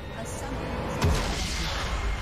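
A deep boom bursts out as a building explodes.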